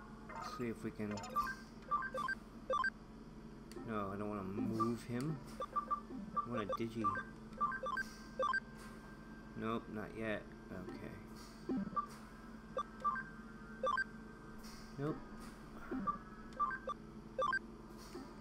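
Short electronic menu beeps chirp as selections change.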